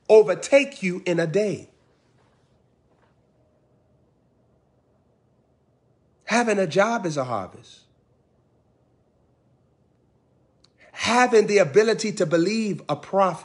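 A young man speaks with animation into a close microphone, pausing between phrases.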